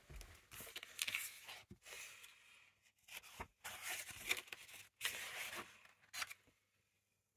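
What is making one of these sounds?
Paper pages rustle and flip.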